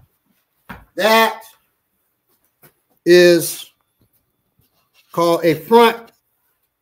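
A man shouts loudly in short bursts nearby.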